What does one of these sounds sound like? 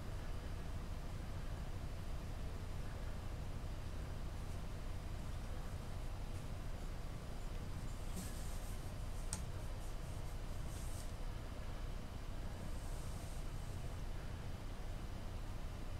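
Fingers brush and rustle softly against feathers.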